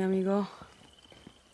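A young woman says a short word with strain, close by.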